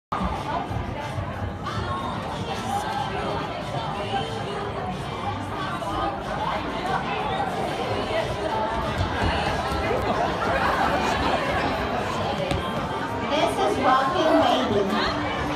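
A seated audience of women chatters with many overlapping voices in a large echoing hall.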